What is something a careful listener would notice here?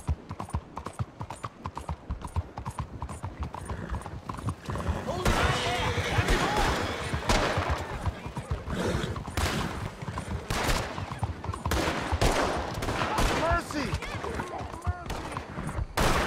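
Horse hooves clop steadily on a cobbled street.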